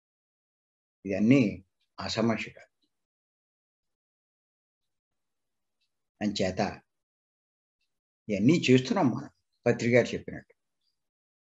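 An elderly man speaks calmly in short phrases over an online call, with pauses between them.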